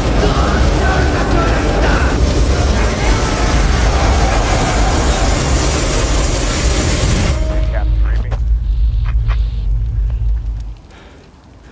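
Explosions roar and rumble loudly.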